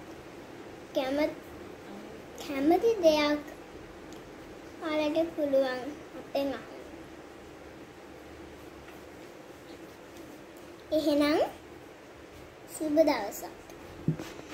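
A young girl speaks up close in short phrases, in a high voice.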